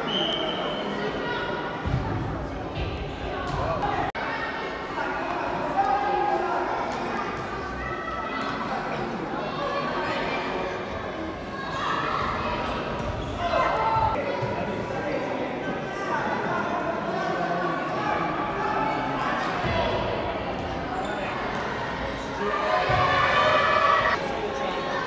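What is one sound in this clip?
Spectators murmur and call out in a large echoing hall.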